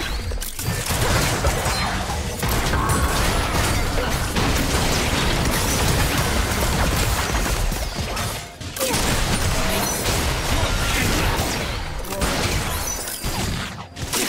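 Magic spells whoosh and crackle in a busy game fight.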